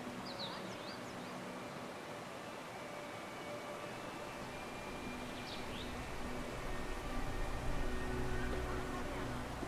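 Footsteps tap softly on stone paving.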